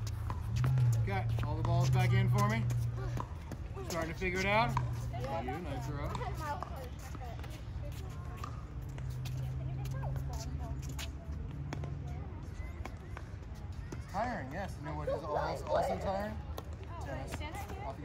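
Young girls talk and call out to each other outdoors.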